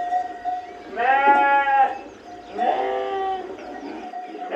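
A flock of sheep bleats.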